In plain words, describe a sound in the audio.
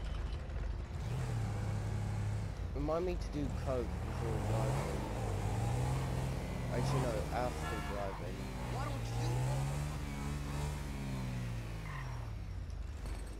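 A motorcycle engine starts and revs up and down as it rides off.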